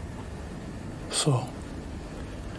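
A young man asks a short question quietly.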